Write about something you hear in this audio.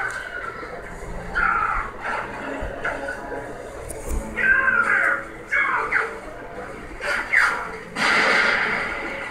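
A video game plays loudly through a television's speakers.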